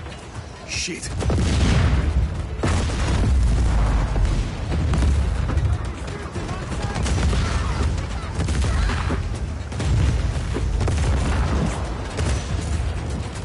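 Loud explosions boom and roar close by.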